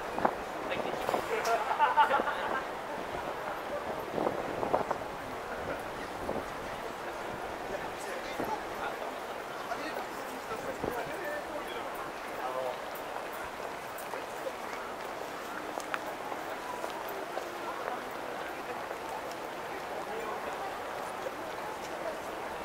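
A crowd of people murmurs outdoors.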